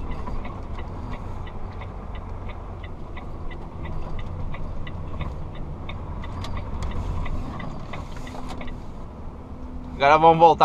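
A truck's diesel engine rumbles low and steady.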